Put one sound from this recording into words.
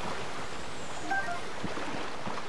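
A bright magical chime rings as an item is picked up.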